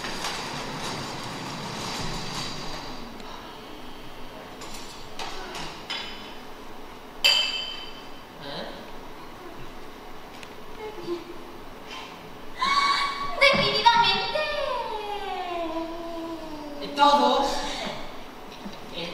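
A young man speaks from a distance in a large echoing hall.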